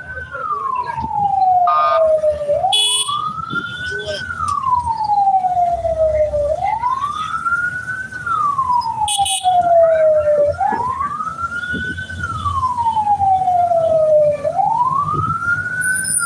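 A car engine rumbles as it drives along a road.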